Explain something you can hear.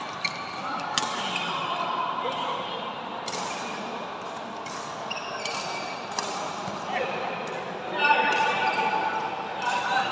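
Shoes squeak on a hard indoor court.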